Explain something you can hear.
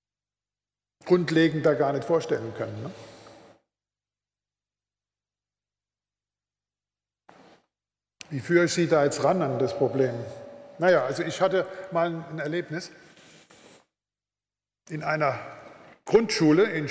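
An elderly man speaks calmly into a microphone in a large hall, with pauses between phrases.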